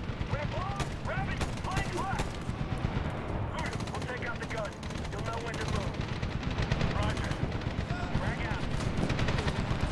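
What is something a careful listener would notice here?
Gunshots crack in short bursts at a distance.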